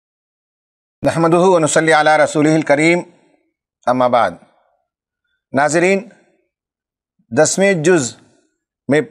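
An elderly man speaks calmly and clearly into a microphone, in short bursts with pauses.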